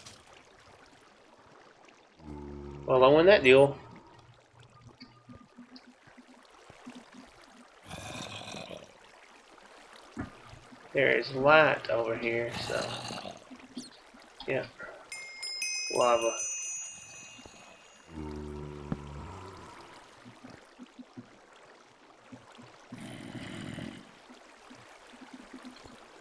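Water trickles and flows nearby.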